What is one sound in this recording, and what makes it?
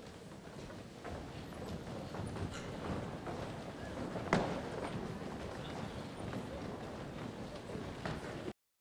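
Many footsteps shuffle across a wooden stage in a large echoing hall.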